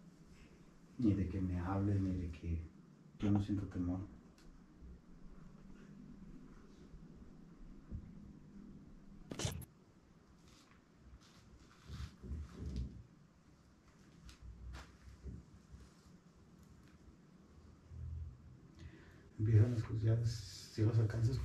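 A young woman speaks softly close by.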